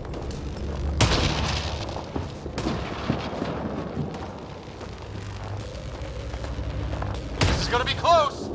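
A pistol fires single sharp shots.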